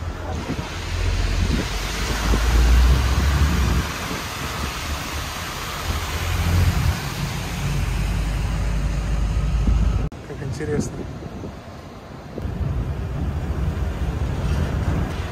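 A small open vehicle rolls along with a low rumble.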